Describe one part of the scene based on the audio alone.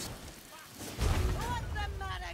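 A fiery blast booms.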